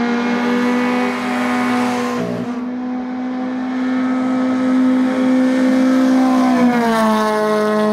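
A racing car engine roars loudly at high revs.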